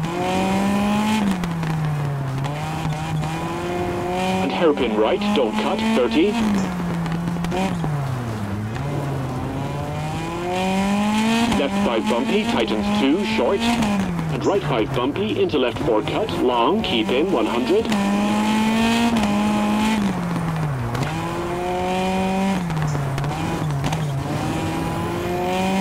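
Tyres skid and crunch on loose gravel.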